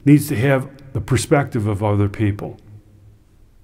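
A middle-aged man speaks calmly and clearly into a close microphone.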